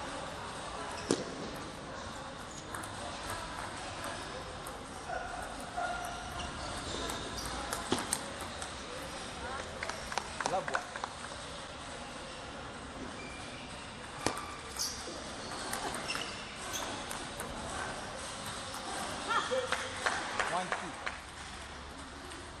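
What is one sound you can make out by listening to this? A table tennis ball clicks back and forth between paddles and table.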